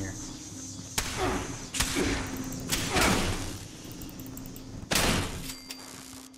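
A heavy blade strikes metal with loud, sharp clangs.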